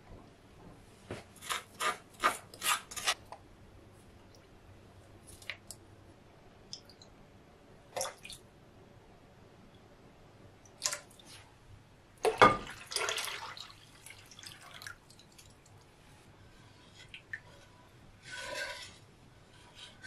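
A wooden spoon knocks and scrapes against a pot.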